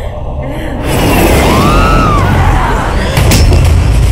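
A woman screams loudly.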